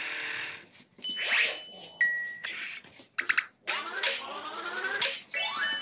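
Bright electronic chimes and tones ring out in short bursts.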